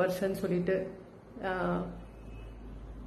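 A woman speaks slowly and expressively close to a microphone.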